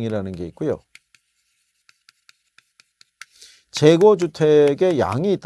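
A man speaks calmly and clearly, as if teaching, close to a microphone.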